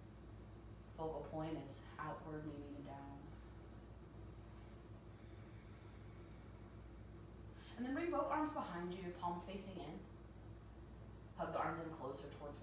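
A woman speaks calmly, giving instructions close by.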